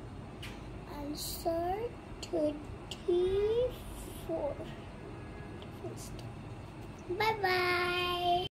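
A young girl speaks with animation close by.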